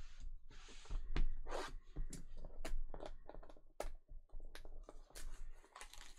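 Fingers tear and peel at a box's seal.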